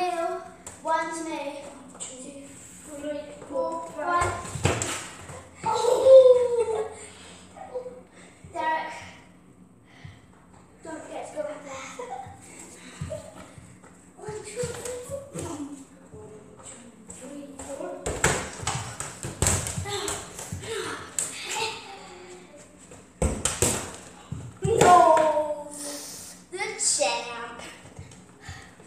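A girl talks and laughs excitedly nearby in an echoing hallway.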